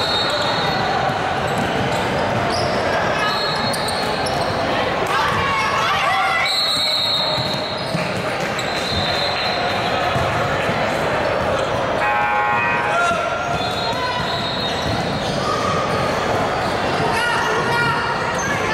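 Young women call out to each other across the court.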